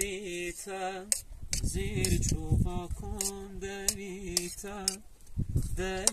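A knife scrapes against a plate.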